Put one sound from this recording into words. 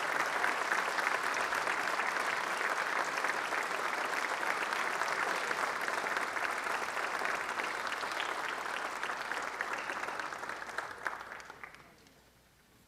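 A large audience applauds in a big hall, and the applause fades away.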